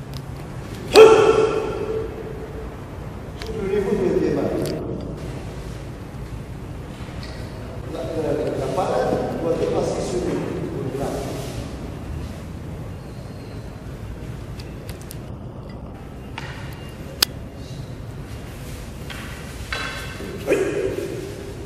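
Wooden staffs knock together sharply in an echoing hall.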